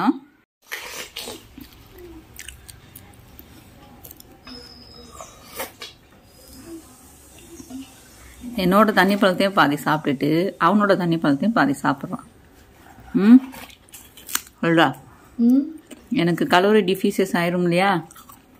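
A boy bites and chews juicy watermelon close by.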